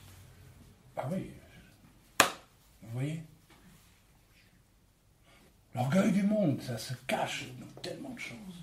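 A middle-aged man speaks calmly and close up, with pauses.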